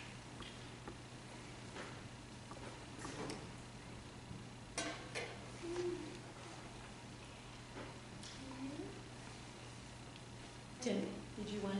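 Metal dishes and a lid clink.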